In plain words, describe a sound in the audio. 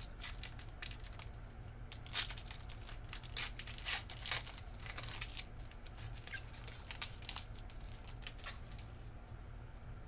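Foil wrapping crinkles and tears as a pack is opened.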